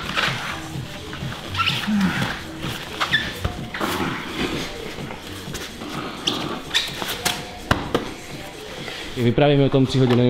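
Bodies and gloves thump and rustle on a mat.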